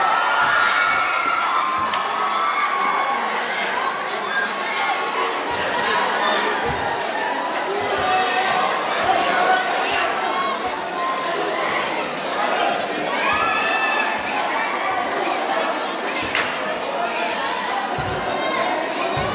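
A large crowd chatters and cheers loudly.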